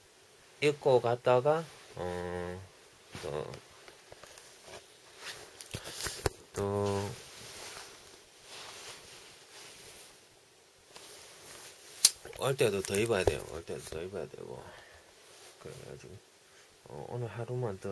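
A young man speaks close to a phone microphone.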